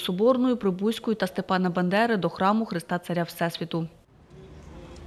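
A man chants a prayer loudly nearby.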